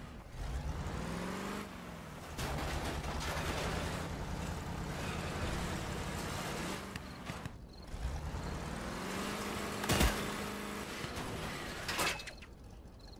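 A vehicle engine revs and roars while driving.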